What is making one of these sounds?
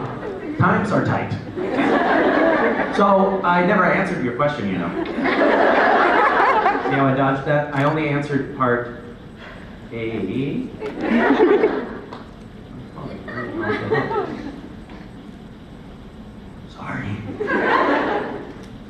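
A young man speaks with animation into a microphone, heard through loudspeakers in a large hall.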